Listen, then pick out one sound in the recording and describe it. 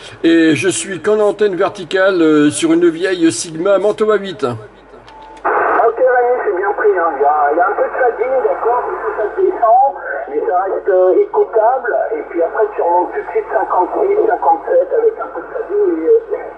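A man talks through a crackly radio loudspeaker.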